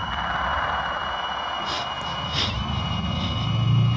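A man speaks slowly into a microphone.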